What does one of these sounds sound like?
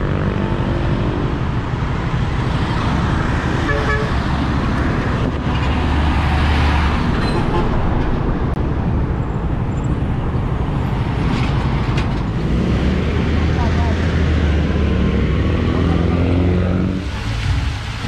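Road traffic hums.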